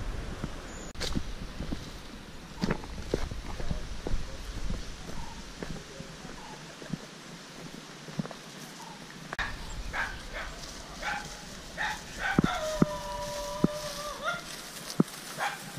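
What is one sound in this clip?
Footsteps crunch on a dry path and grass.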